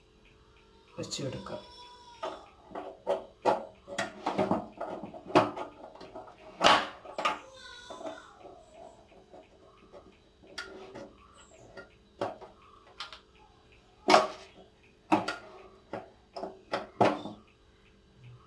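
A stove knob clicks sharply as it is turned.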